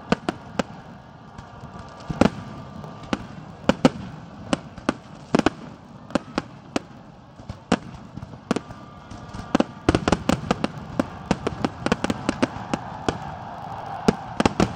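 Fireworks burst with sharp bangs and booms, sometimes fast one after another.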